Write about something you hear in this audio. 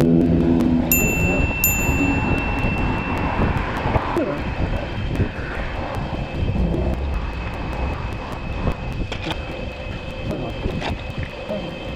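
Wind buffets and rumbles loudly outdoors.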